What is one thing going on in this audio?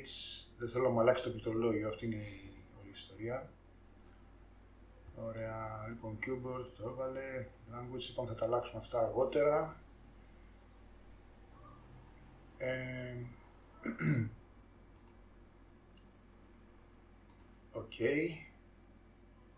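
A middle-aged man speaks calmly and close to a microphone, in short bursts with pauses.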